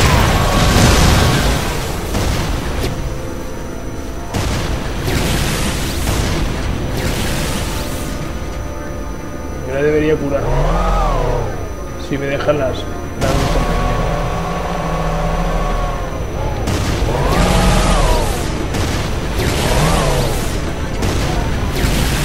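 Energy guns fire in rapid zapping bursts.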